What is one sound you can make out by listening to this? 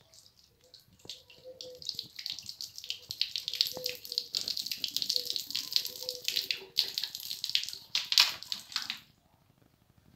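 Water pours and splashes onto a hard floor.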